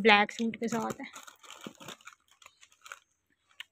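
Plastic wrappers rustle softly as small items are handled.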